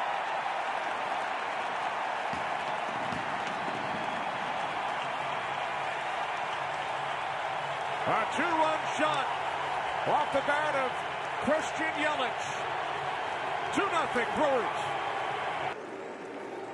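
A large crowd cheers and roars loudly in a big stadium.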